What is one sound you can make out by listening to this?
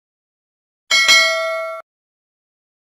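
A small bell chimes briefly.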